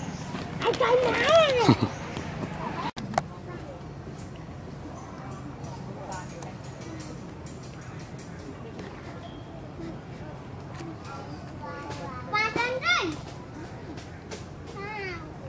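A monkey gives shrill, rising and falling calls close by.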